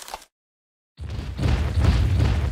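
A large dinosaur roars loudly.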